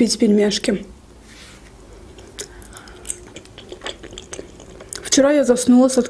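A young woman chews food with soft, wet mouth sounds close to a microphone.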